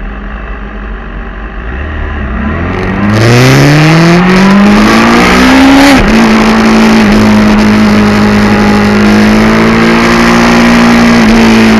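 A motorcycle engine revs up hard and roars at high speed, shifting gear.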